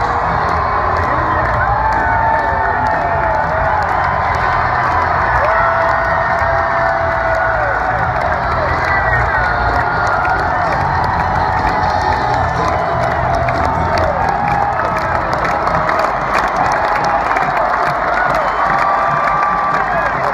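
A huge stadium crowd roars and cheers all around.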